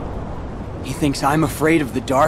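A young man speaks calmly with a hint of scorn.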